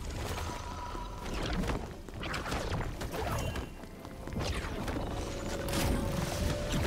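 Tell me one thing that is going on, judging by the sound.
Magic spell effects whoosh and crackle in quick bursts.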